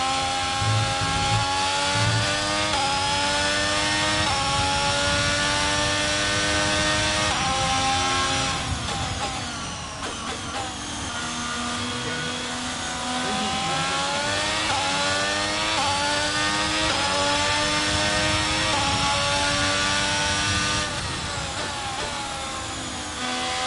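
A racing car engine screams at high revs, rising through the gears and dropping as it brakes.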